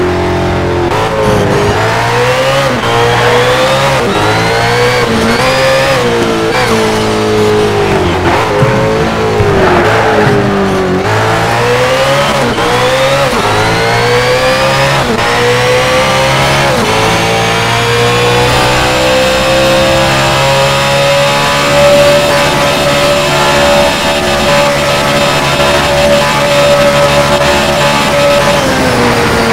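A racing car engine roars, revving up and dropping as the gears change, then holds a steady high whine.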